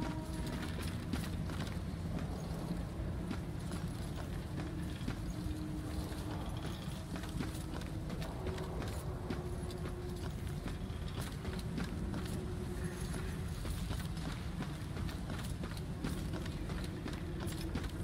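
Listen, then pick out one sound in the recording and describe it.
Footsteps hurry over stone at a steady pace.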